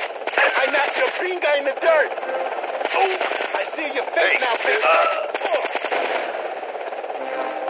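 Guns fire in rapid, loud bursts.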